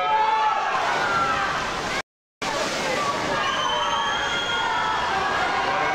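Swimmers splash and kick through the water.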